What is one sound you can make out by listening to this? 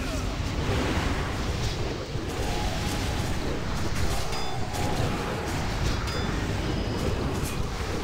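Game spell effects crackle and whoosh in a busy fight.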